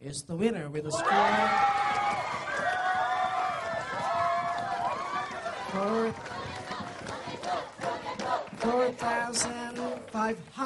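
A crowd cheers and shouts excitedly.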